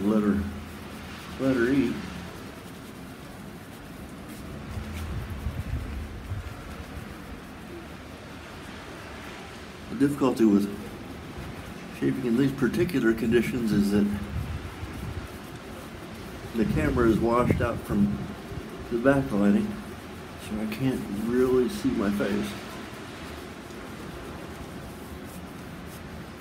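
A shaving brush scrubs lather on a bearded face.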